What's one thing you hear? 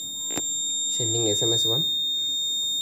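A mobile phone gives a short notification tone.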